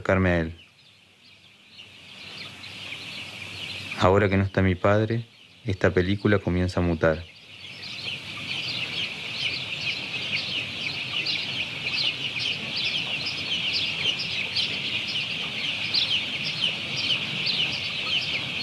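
Many chicks peep and cheep in a dense, steady chorus.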